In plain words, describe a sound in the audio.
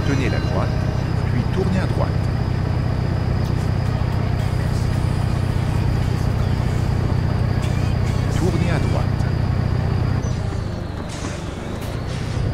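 A truck engine hums steadily at cruising speed.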